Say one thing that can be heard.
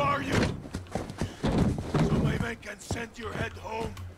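A body thuds onto a metal van floor.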